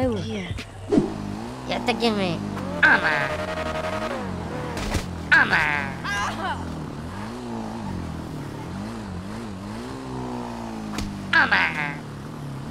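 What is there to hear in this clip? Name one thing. A motorcycle engine revs up and down as it rides along.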